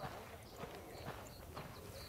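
Boots run on gravel.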